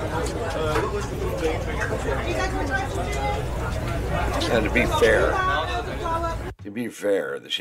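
A busy crowd chatters all around.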